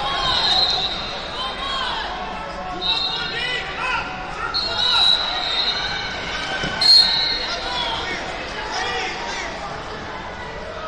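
Spectators shout encouragement in a large echoing hall.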